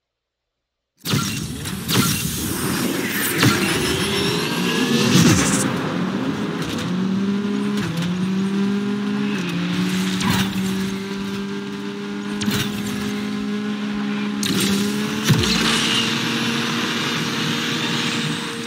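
A racing car engine roars and revs up through the gears.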